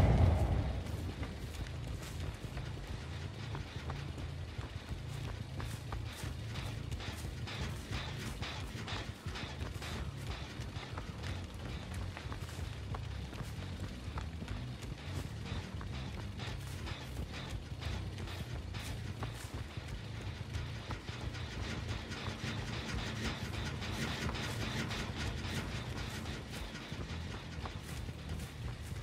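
Footsteps crunch through tall grass.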